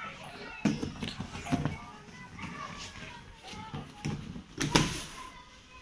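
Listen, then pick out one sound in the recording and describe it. Bodies thump onto soft mats.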